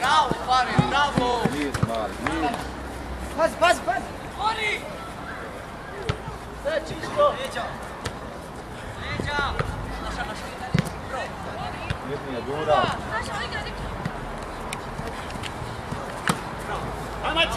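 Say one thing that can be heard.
Young players shout to each other across an open pitch.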